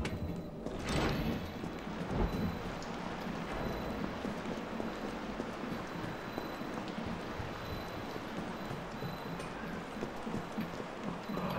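Footsteps walk steadily along a hard floor.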